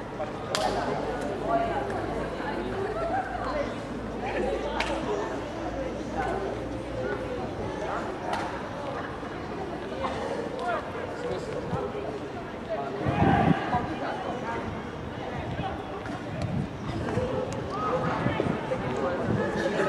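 Men shout and call out to each other across an open outdoor pitch.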